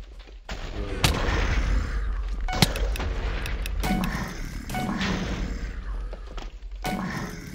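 Sharp blows strike zombies in a game, with quick thuds and cracks.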